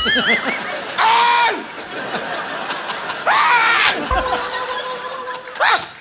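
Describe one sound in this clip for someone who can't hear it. Men laugh heartily.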